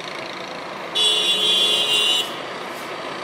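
A vehicle horn honks loudly in the distance.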